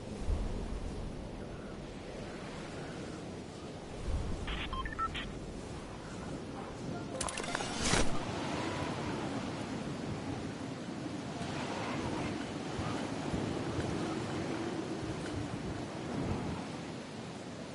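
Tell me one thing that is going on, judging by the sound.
Wind rushes steadily.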